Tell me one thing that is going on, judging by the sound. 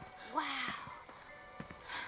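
A young woman exclaims with wonder.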